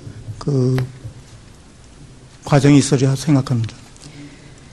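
A middle-aged man speaks into a microphone in short phrases.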